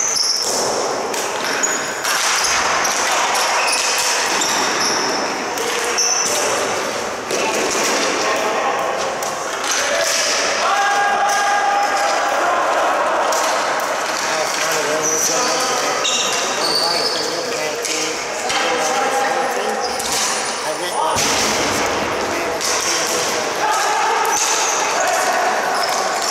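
Sneakers squeak sharply on a hard floor in a large echoing arena.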